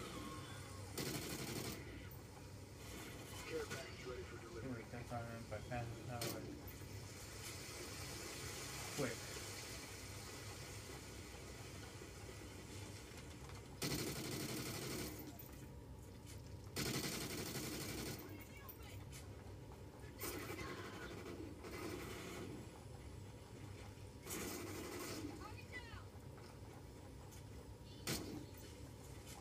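Gunfire and explosions from a video game play through television speakers in a room.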